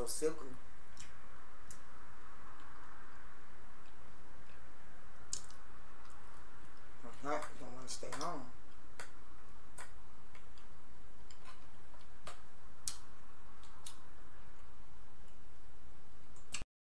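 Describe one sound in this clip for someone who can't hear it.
A fork clinks against a plate.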